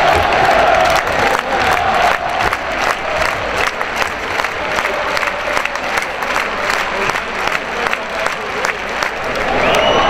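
A crowd claps in a steady rhythm.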